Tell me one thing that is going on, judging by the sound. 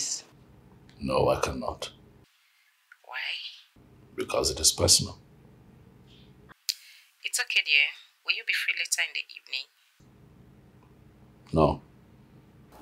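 A man speaks calmly into a phone, close by.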